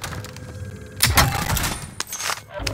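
A metal crate lid creaks open with a clatter.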